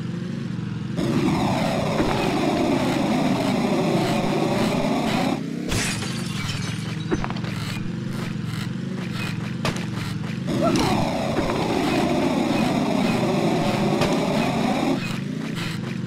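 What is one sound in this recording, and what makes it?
A rocket boost roars with a rising and falling whoosh.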